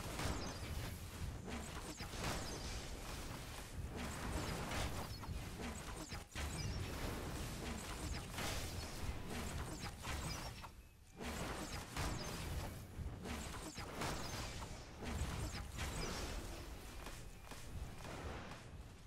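Energy blasts fire and crackle in rapid bursts.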